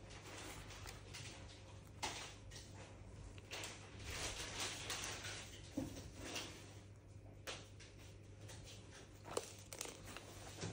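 Fabric rustles as hands handle cloth and a tape measure.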